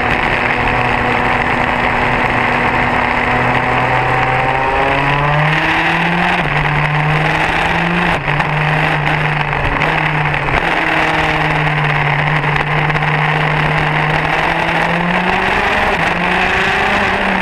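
A kart engine roars loudly up close, its pitch rising and falling as it speeds up and slows down.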